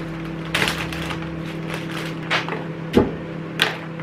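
Salad leaves rustle as they drop into a bowl.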